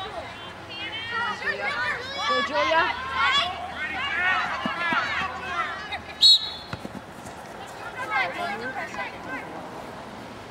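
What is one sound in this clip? Spectators on the sideline shout and cheer excitedly.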